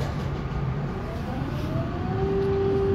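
A bus engine revs up as the bus pulls away.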